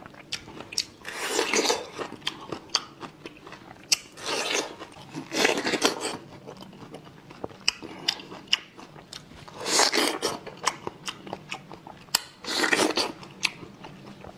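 A man bites into juicy fruit with loud, wet crunches close to a microphone.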